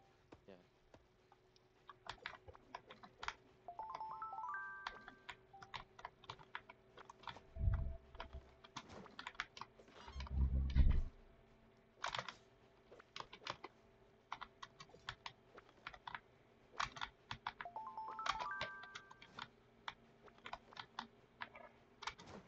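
Short game clicks tap again and again.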